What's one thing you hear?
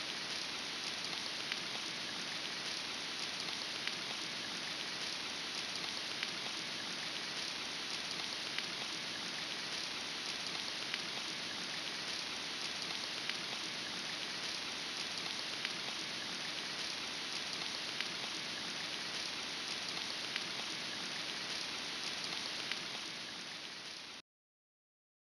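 Rain falls steadily and hisses.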